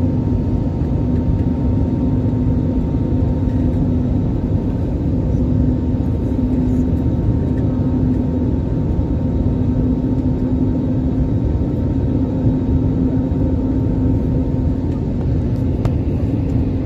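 A jet engine roars steadily with a low hum inside an airliner cabin.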